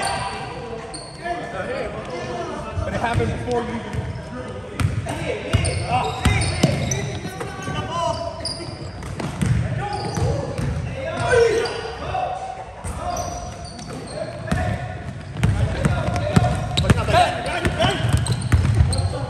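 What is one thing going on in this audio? Men shout to each other across the court.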